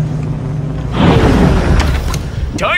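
A spaceship touches down with a heavy rumble.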